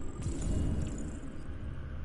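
Footsteps crunch on debris.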